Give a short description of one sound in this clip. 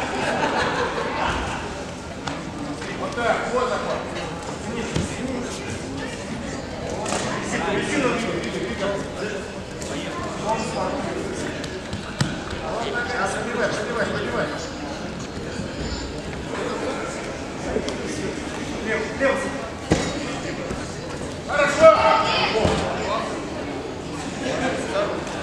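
A crowd of spectators talks and shouts in a large echoing hall.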